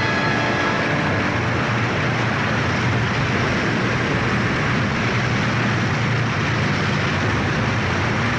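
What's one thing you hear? A waterfall roars steadily close by.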